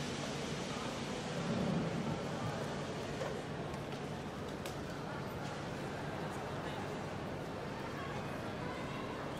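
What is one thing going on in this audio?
Many people murmur and walk about in a large echoing hall.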